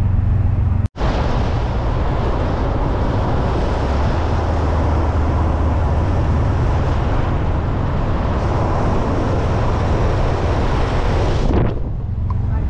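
Wind rushes loudly past a moving vehicle.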